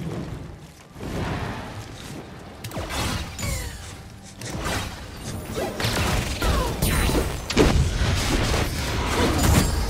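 Fantasy battle effects whoosh, crackle and thud in a video game.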